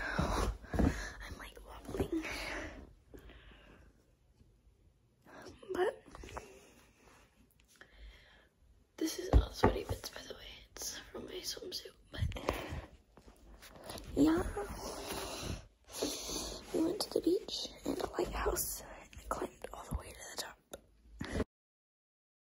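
A young girl talks close to the microphone with animation.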